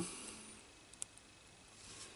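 A button clicks once as a finger presses it.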